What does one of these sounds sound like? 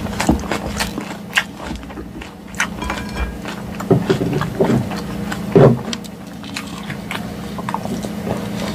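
A woman chews crunchy lettuce close to a microphone.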